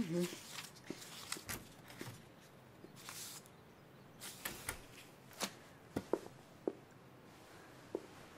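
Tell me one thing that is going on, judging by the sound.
Papers and folders are shuffled on a desk.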